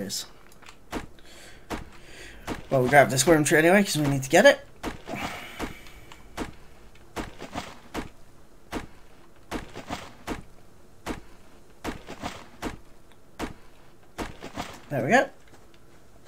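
An axe chops into a tree trunk with sharp, regular knocks.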